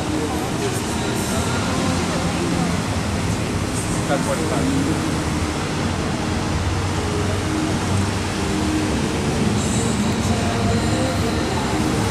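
Fountain jets spray and splash steadily into a pool outdoors.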